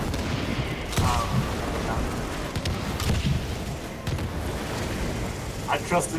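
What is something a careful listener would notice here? Explosions boom and roar.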